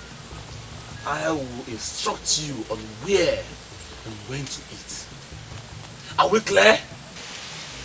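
A man speaks tensely and forcefully nearby, outdoors.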